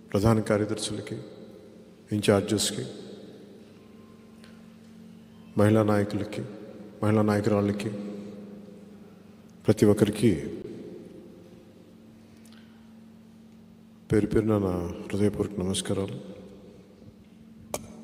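A man speaks forcefully through a microphone in a large echoing hall, in bursts with pauses.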